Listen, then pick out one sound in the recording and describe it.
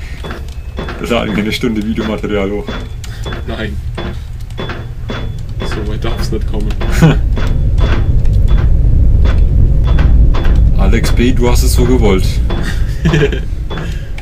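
Two young men talk and laugh with animation, close to a microphone.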